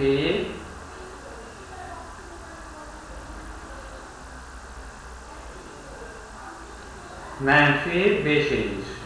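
A man speaks calmly into a close microphone, pausing for long stretches.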